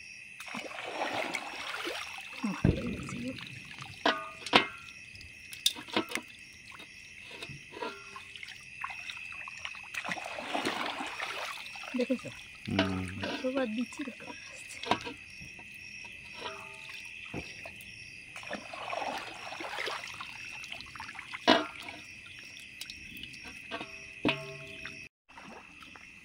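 Water splashes and swirls as a net sweeps through shallow water.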